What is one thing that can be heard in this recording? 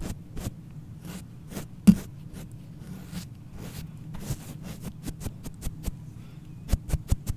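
A young girl whispers softly close to a microphone.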